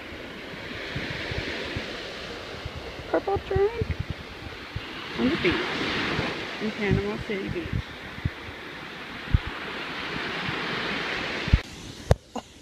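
Waves wash onto the shore with a steady rush.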